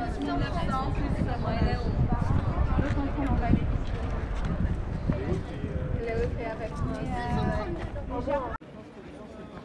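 Men and women talk nearby in an open outdoor space.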